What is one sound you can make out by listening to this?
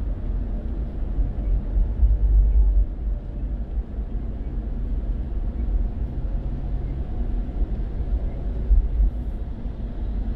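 Rain patters on a car windscreen.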